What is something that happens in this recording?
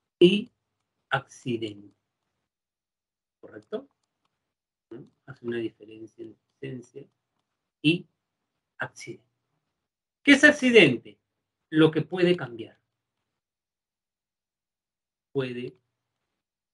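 A man speaks calmly through an online call, in short phrases with pauses.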